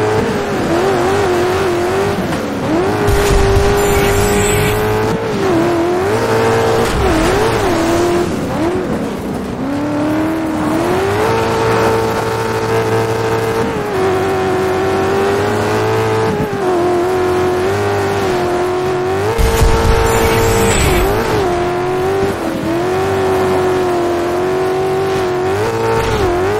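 A racing buggy's engine roars and revs up and down, shifting gears.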